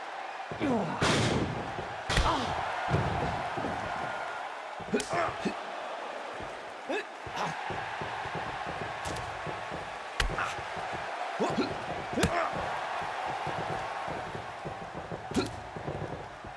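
Blows land with sharp thuds now and then.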